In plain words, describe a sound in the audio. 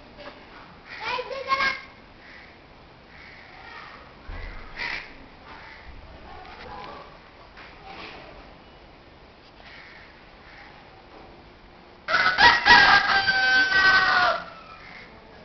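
A child shouts loudly outdoors at a distance.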